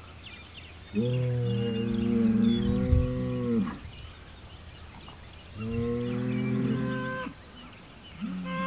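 A bull bellows loudly and long, close by.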